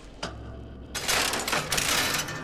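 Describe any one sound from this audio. A metal lever clunks as it is pulled.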